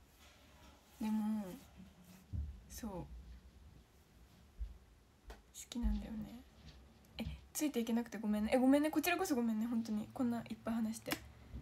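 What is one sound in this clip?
A young woman talks close to a microphone with animation, with pauses.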